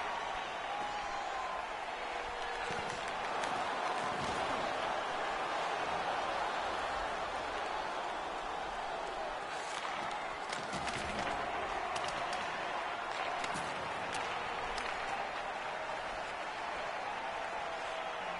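A large arena crowd roars steadily.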